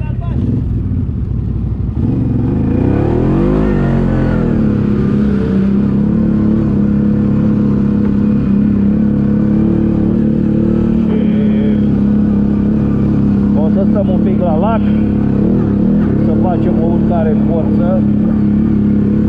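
A quad bike engine hums steadily up close, rising and falling in pitch.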